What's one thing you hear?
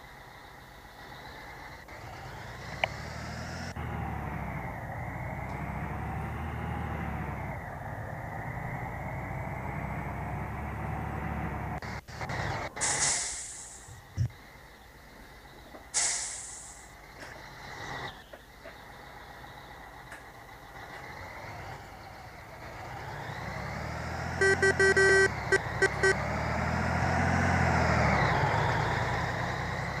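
A bus engine rumbles and rises and falls in pitch as the bus drives along.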